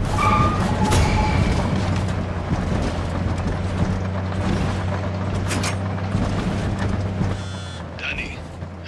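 A car engine drones steadily while driving.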